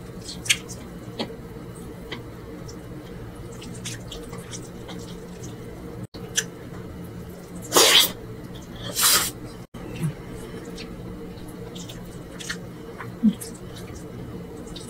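Fingers squish and rustle through sticky rice.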